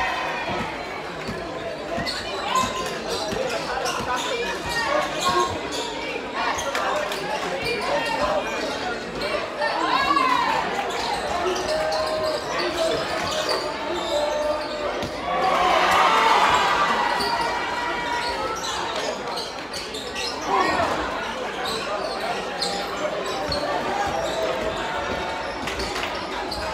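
Basketball shoes squeak on the court.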